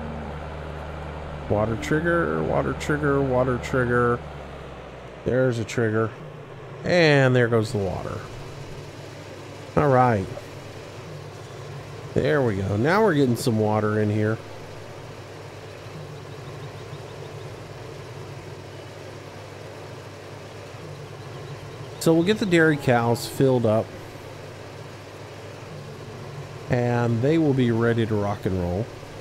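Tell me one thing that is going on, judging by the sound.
A tractor engine idles with a low steady hum.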